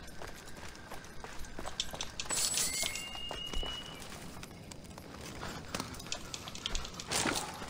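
Footsteps pad softly on a stone floor.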